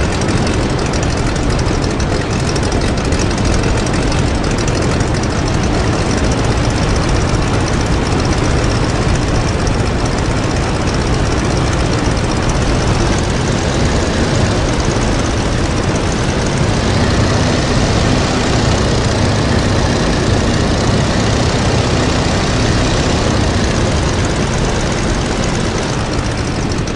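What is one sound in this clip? A biplane's engine drones steadily and loudly.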